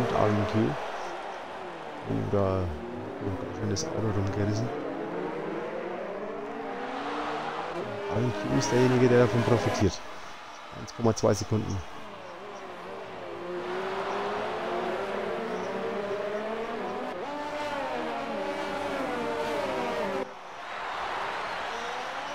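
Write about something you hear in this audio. Racing car engines whine and rev at high speed, rising and falling in pitch.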